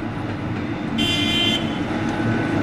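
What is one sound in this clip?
A horn on a locomotive sounds briefly.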